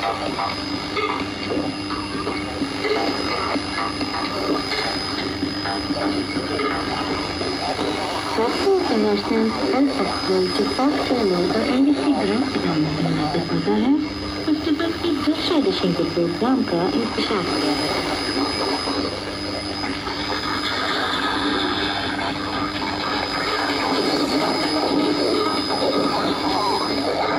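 A radio plays through a small loudspeaker.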